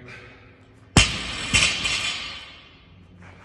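A barbell crashes down onto a rubber floor with a loud bang and rattle.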